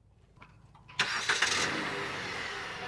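A car engine starts up.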